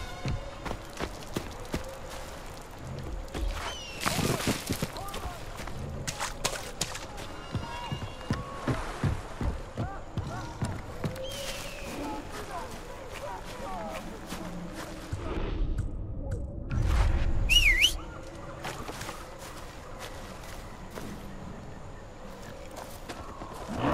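Footsteps crunch over dry grass and dirt.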